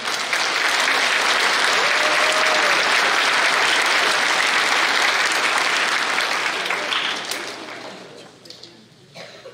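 An audience applauds in a large hall and the clapping dies away.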